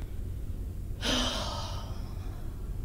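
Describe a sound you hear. A young woman breathes in deeply and loudly.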